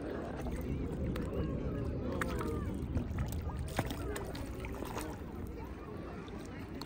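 Fish splash and slurp at the water's surface.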